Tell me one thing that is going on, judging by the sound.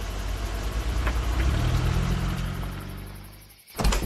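A car engine hums and pulls away.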